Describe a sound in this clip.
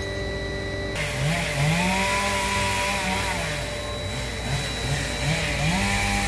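A chainsaw revs up and down nearby.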